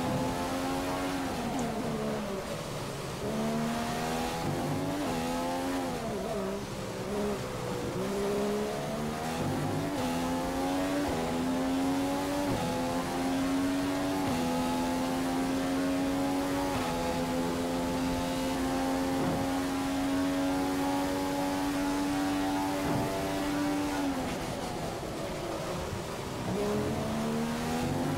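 A racing car engine screams at high revs, rising through gear shifts and dropping sharply when braking.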